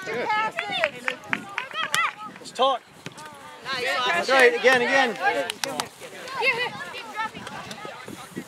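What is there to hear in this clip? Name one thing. Children shout and cheer with high voices outdoors.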